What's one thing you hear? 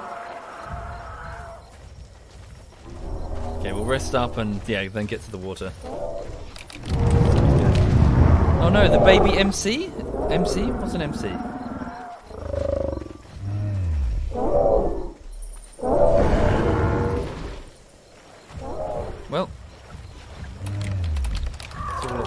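Large creatures bellow and honk loudly, one call after another.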